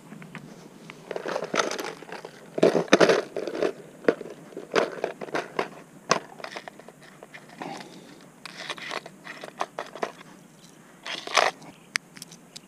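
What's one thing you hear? A plastic tackle box clicks and rattles as it is handled.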